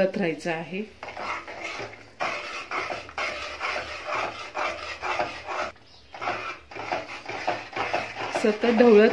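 A metal spoon stirs and scrapes inside a metal pot.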